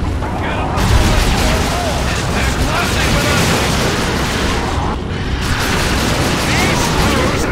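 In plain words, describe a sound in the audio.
Rapid gunfire and laser blasts crackle in a fierce battle.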